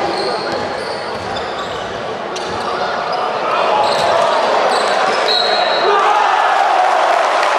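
A crowd cheers and shouts loudly in a large echoing hall, growing louder.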